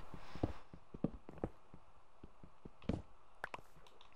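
A pickaxe chips and breaks a stone block.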